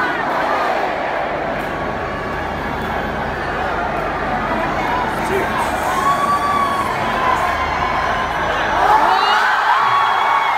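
A huge stadium crowd roars and cheers loudly.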